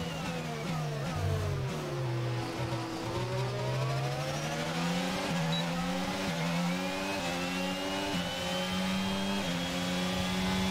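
A racing car engine whines, dropping in pitch as it slows down, then revving higher through quick gear changes as it speeds up.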